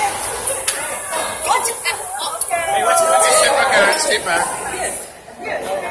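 Several adults chat nearby.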